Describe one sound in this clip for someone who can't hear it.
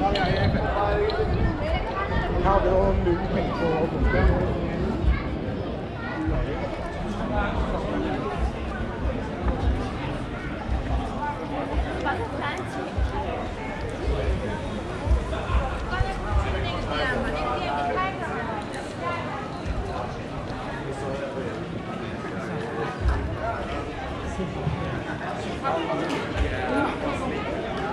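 A crowd of people chatters outdoors in a busy street.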